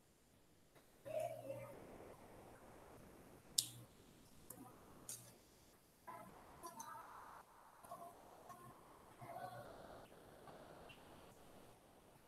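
A young woman speaks calmly through a microphone on an online call.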